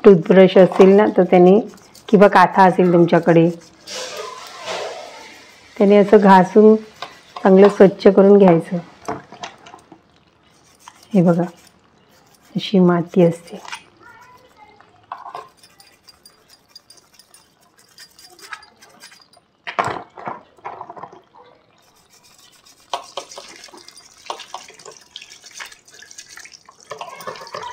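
A toothbrush scrubs a crab's hard shell.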